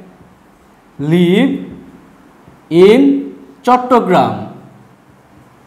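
A man speaks nearby in short, clear phrases.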